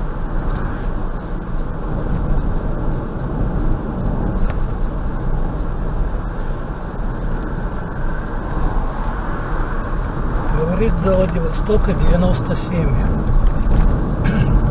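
Tyres roll steadily on a road with a low engine hum.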